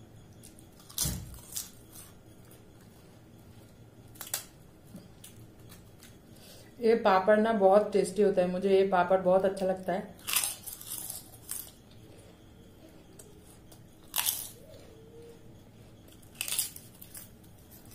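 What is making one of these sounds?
Crisp flatbread crunches and cracks as a woman bites and breaks it.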